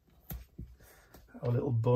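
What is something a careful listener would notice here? Fingers tap and brush against a sheet of paper.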